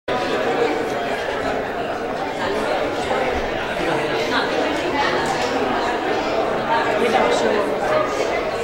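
A group of singers sings together through microphones.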